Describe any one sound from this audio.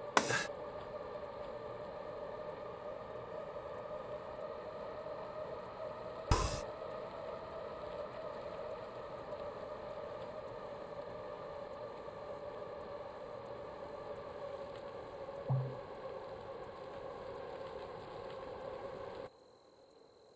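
A stationary bike trainer whirs steadily.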